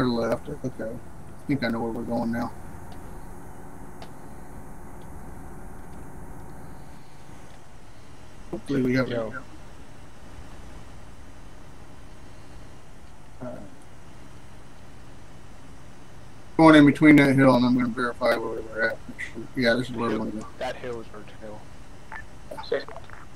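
A man speaks casually into a headset microphone, in short bursts.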